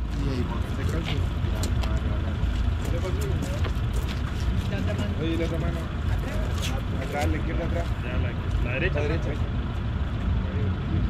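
Several men talk quietly nearby outdoors.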